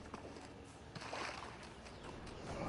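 Water splashes as someone runs through it.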